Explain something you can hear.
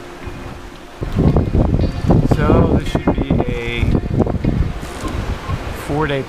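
Waves splash and rush against the side of a sailing boat.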